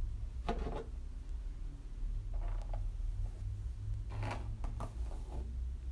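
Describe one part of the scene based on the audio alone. A hairbrush brushes through hair.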